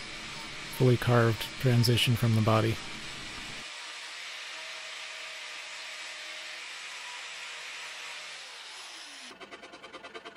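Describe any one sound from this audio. An electric sander whirs steadily against wood.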